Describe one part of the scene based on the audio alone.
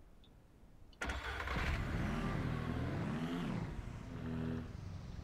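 A small vehicle engine starts and runs.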